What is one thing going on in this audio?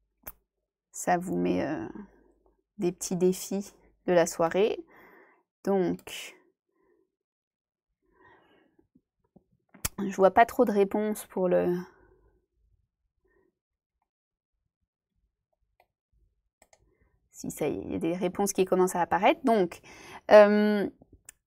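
A young woman speaks calmly into a close microphone, with pauses.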